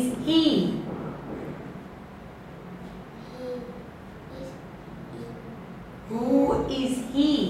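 A woman speaks brightly and slowly, close by.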